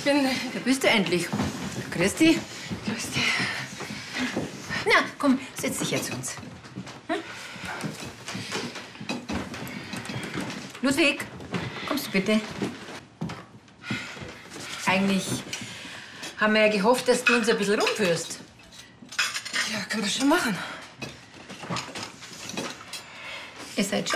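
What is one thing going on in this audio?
A young woman speaks nearby.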